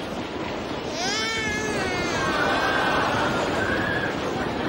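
A baby cries loudly and wails close by.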